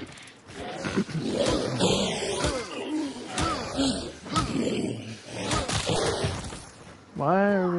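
Heavy blows strike a creature with wet thuds.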